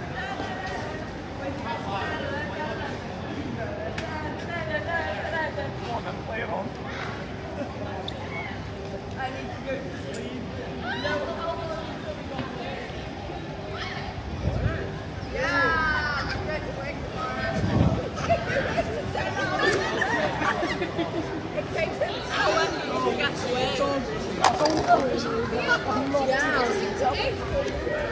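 A crowd of young adults chatters and calls out outdoors.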